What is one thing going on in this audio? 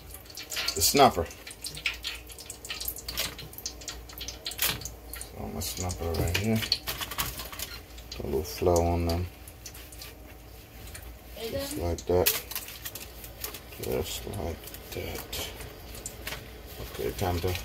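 Foil crinkles and rustles up close.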